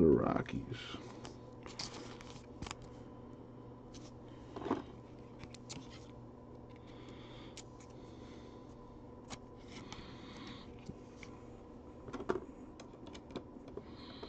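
A trading card slides into a plastic sleeve with a faint rustle.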